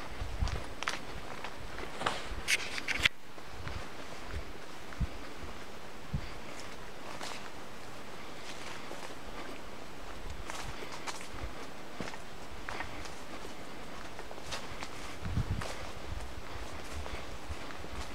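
Steady rain patters on leaves all around, outdoors.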